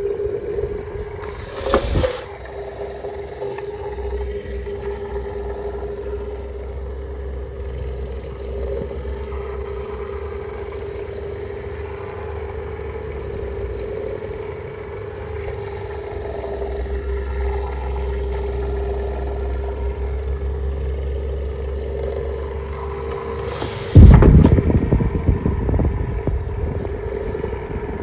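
An electric fan hums steadily as its blades spin.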